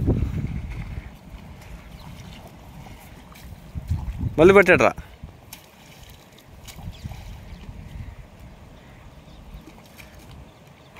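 Water sloshes and splashes as people wade through a shallow stream.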